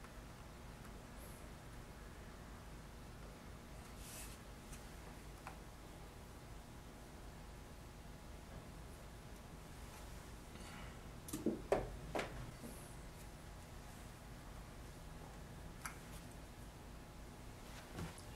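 Fingers softly rub and smooth damp clay.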